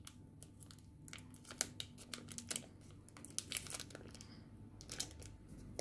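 Foil wrapping crinkles and rustles as it is handled.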